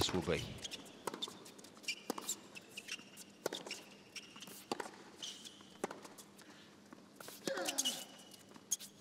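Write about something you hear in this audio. A tennis ball is struck back and forth with sharp pops of the racket.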